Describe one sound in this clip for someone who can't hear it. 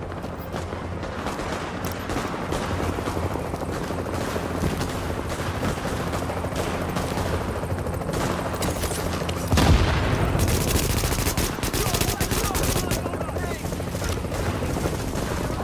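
Guns fire in rapid bursts nearby.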